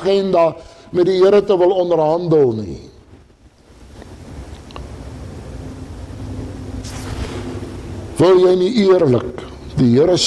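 A man speaks with animation through a headset microphone, pausing in between.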